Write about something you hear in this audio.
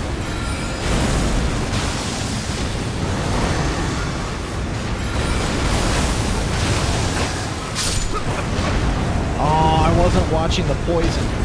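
Game combat sounds clash and boom with magic effects.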